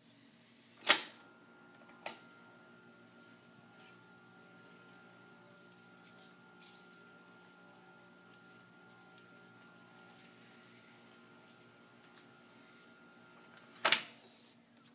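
Tape reels spin with a faint steady whirr and hum.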